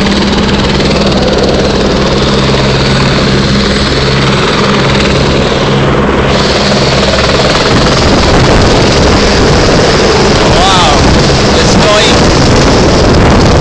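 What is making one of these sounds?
A helicopter's rotor thumps and its engine roars loudly nearby.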